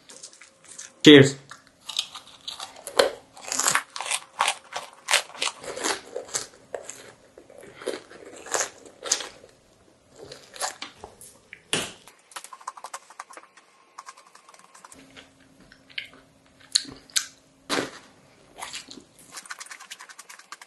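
A young man bites and crunches on candy close up.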